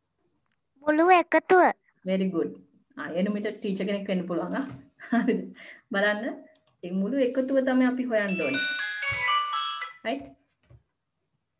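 A young girl speaks calmly through an online call.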